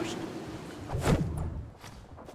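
A heavy thud sounds on landing.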